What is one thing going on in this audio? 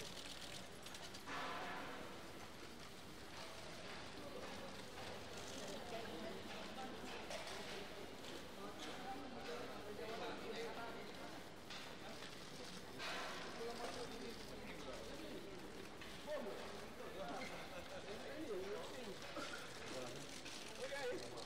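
A crowd of men and women talk and murmur nearby.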